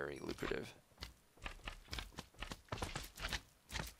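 A slime squelches as it hops.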